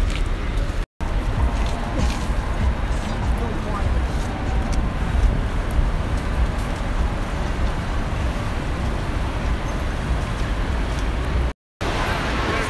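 A crowd of people chatters while walking close by.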